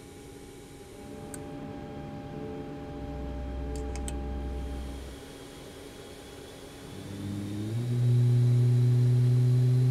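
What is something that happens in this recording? An aircraft's auxiliary engine hums steadily.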